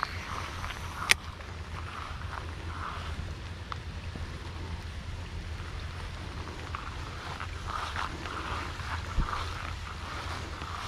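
A fishing reel clicks and whirs as its handle is cranked.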